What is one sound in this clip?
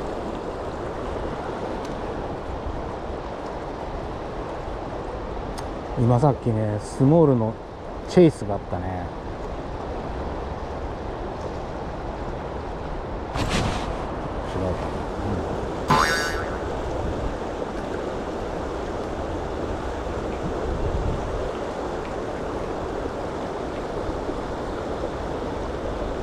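River water rushes and splashes nearby.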